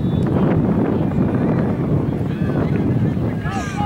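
A soccer ball is kicked with a dull thud.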